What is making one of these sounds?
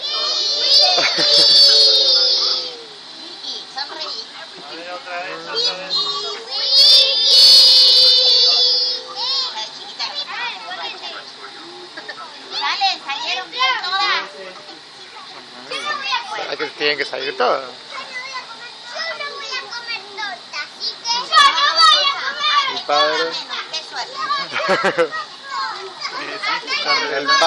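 Children chatter and call out outdoors.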